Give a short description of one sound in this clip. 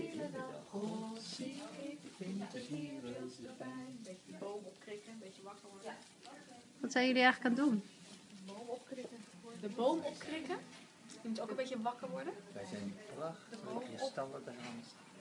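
Several women talk and chat nearby.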